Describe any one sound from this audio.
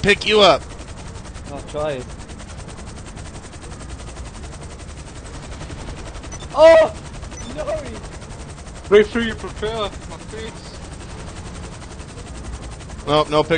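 A helicopter hovers with its rotor thudding.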